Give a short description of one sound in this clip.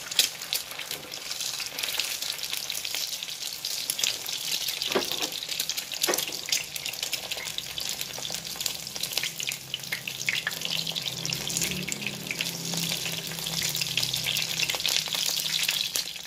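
A spatula scrapes against a pan.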